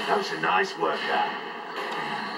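Explosions boom and crackle through a television speaker.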